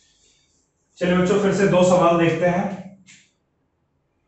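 A man speaks loudly and clearly into a microphone nearby.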